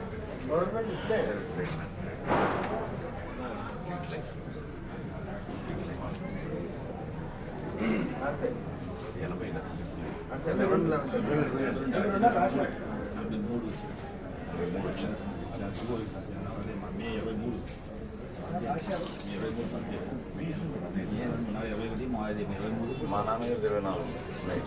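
Several men chatter nearby in a crowd.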